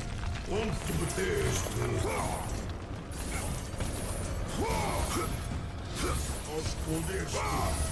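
Blades swish and strike repeatedly.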